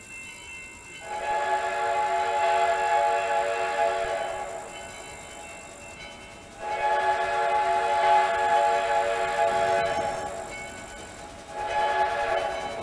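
A steam locomotive's whistle blows in long blasts.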